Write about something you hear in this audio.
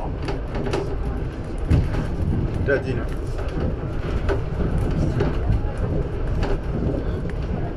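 A monorail car hums and rumbles steadily as it travels.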